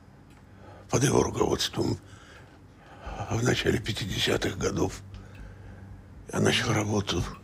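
An elderly man speaks calmly and wearily, close by.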